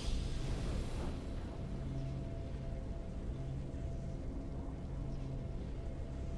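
A deep, triumphant game victory tune swells and holds.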